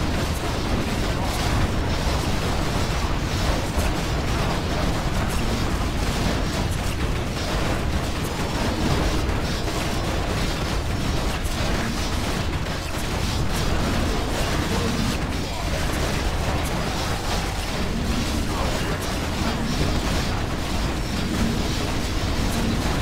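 Swords clash and spells burst in a busy battle.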